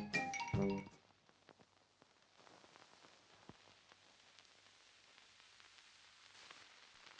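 Soft crackles and pops sound over a quiet hiss.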